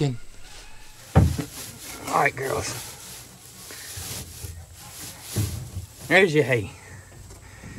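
Dry hay rustles and crackles as it is handled.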